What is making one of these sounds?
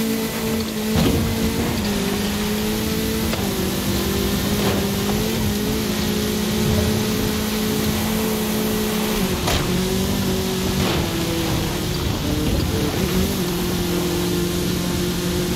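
A car's tyres rumble over rough grass.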